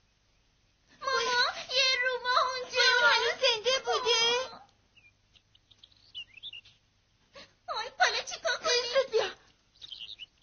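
A woman speaks with animation in a high, playful voice.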